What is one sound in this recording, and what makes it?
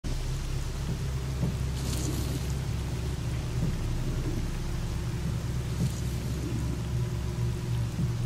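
Footsteps crunch steadily through dry grass.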